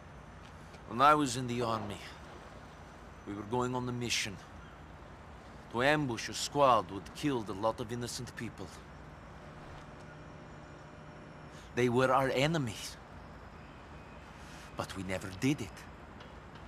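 A man speaks calmly and gravely, heard up close.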